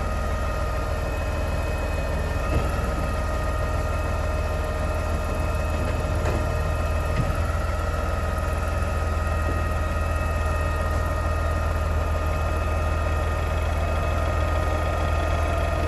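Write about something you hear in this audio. Cardboard thumps into the hopper of a garbage truck.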